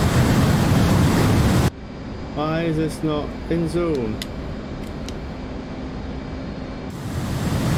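A jet engine roars loudly.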